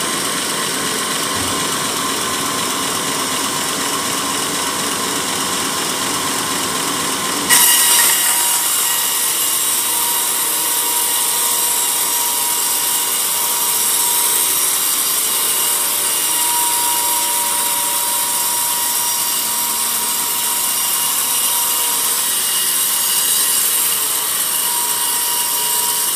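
A band saw runs with a steady, loud whir.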